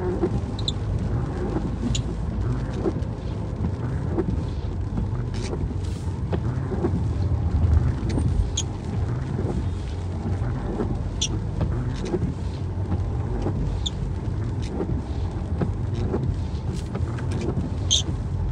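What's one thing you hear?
Windscreen wipers sweep across the glass.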